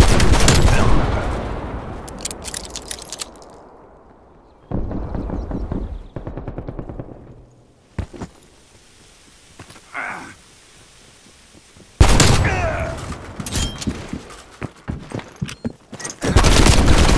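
Pistol gunshots fire in quick bursts.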